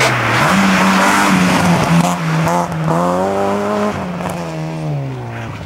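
Tyres screech on asphalt as a car slides through a turn.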